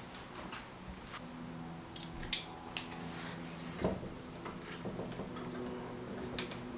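Small wooden and metal parts click and knock as they are handled.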